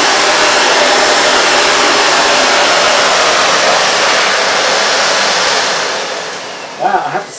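A vacuum cleaner roars steadily, then winds down.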